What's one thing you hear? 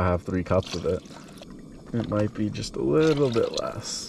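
Water pours and splashes into a pot.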